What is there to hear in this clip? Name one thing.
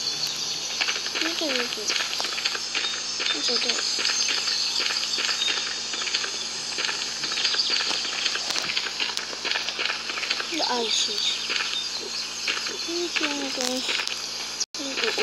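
A young child speaks near a microphone, in short bursts.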